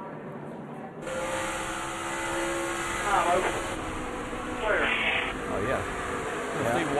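Wind rushes hard past a speeding car.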